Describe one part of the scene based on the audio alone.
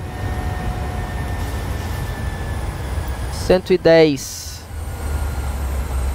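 A low aircraft engine hum drones steadily.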